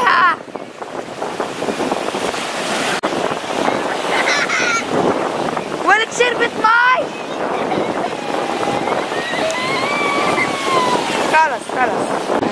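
Waves crash and wash onto the shore.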